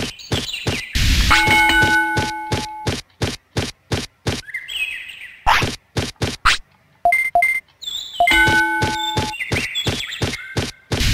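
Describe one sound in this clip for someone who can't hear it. A magical energy burst whooshes and crackles.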